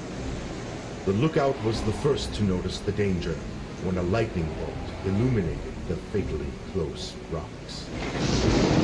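A young man speaks calmly.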